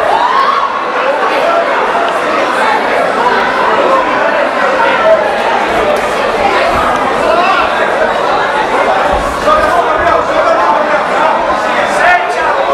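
A crowd shouts and cheers loudly around an arena.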